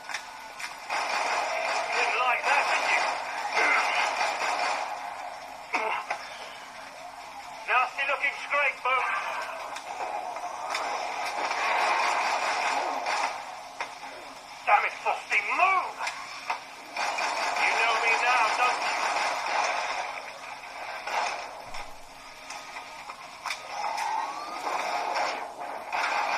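Game gunfire and explosions play loudly through a small speaker.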